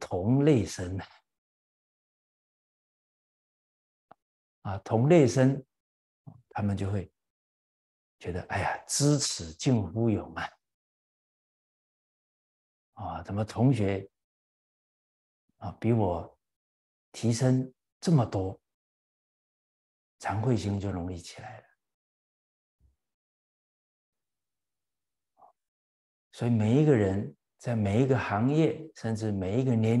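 An elderly man speaks calmly and warmly into a close microphone, with pauses between phrases.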